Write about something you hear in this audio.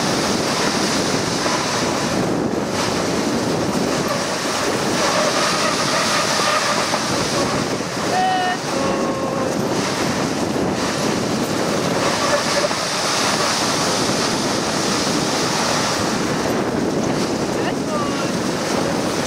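Sled runners hiss steadily over snow.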